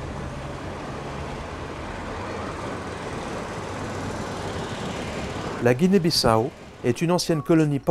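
A car engine hums as a car drives slowly by.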